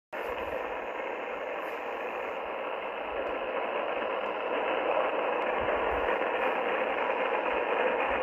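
A radio receiver plays steady static hiss through its small speaker.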